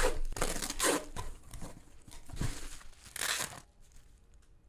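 Plastic wrap crinkles and rustles as a package is unpacked.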